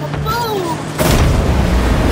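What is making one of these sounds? A loud explosion bursts in a video game.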